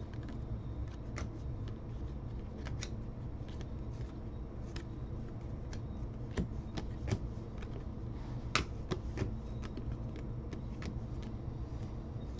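Trading cards flick and slide against each other as hands shuffle through them.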